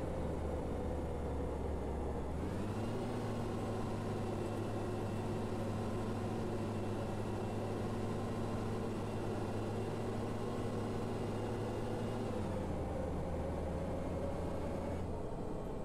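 A bus engine drones steadily, rising in pitch and later dropping back down.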